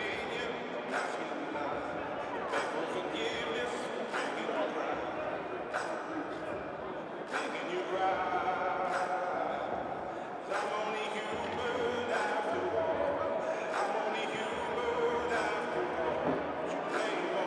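Hockey sticks click against the ice and puck.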